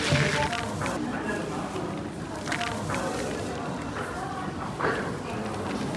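Dry strands patter as they drop back onto the heap.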